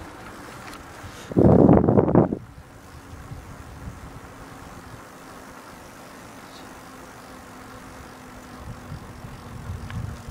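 Skateboard wheels roll steadily over rough asphalt.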